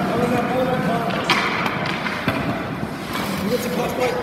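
Ice skates scrape and glide on an ice rink.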